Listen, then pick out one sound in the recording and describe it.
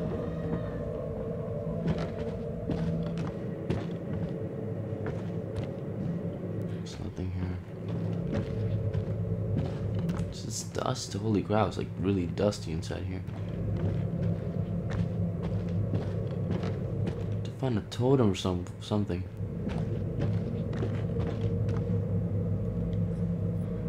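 Footsteps tread slowly.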